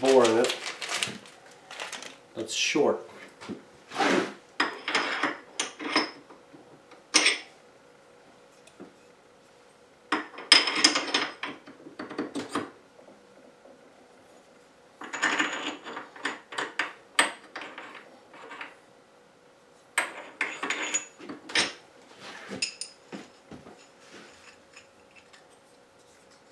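A man speaks calmly and close by, in short bursts.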